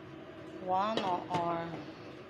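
A lid clatters onto a pot.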